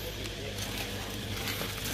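A plastic bag crinkles in a hand.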